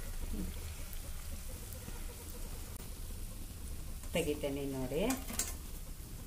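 Oil sizzles and bubbles in a frying pan.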